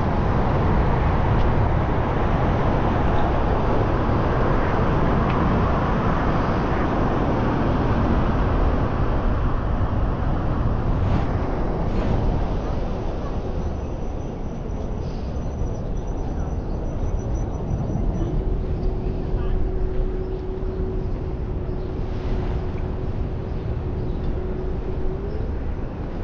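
Wind rushes and buffets loudly, outdoors.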